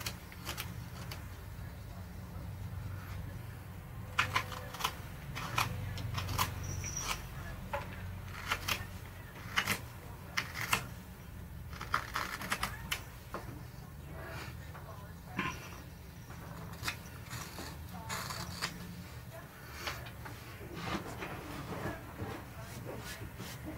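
A knife scrapes and shaves wood in short strokes, close by.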